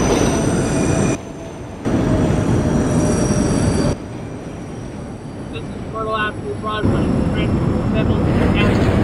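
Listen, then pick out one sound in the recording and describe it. A subway train rumbles and clatters along the tracks.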